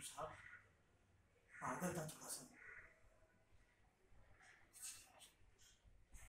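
A young man speaks calmly close by, in short bursts with pauses.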